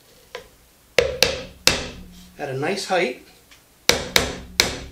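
A mallet strikes a chisel in sharp, ringing knocks.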